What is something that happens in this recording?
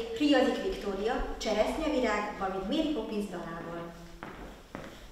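A young woman announces calmly into a room with a slight echo.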